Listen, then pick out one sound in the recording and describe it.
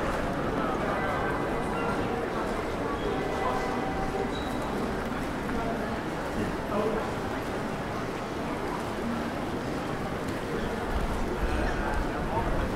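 A crowd of people chatters outdoors in a busy open square.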